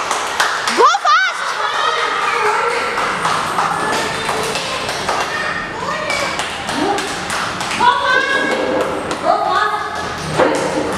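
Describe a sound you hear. Young children shout and chatter excitedly in an echoing hall.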